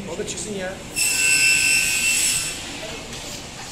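A metal cutting saw whines loudly for a moment.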